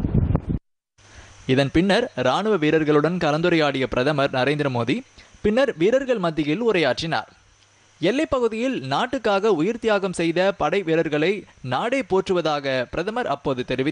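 An elderly man speaks forcefully into a microphone over loudspeakers outdoors.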